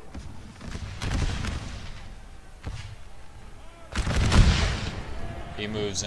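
A volley of muskets fires with loud cracking bangs.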